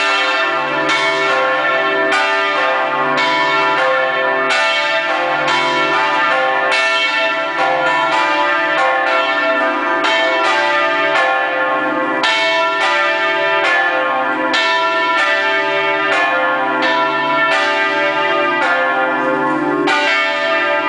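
A large church bell rings loudly and repeatedly, each strike ringing on into the next.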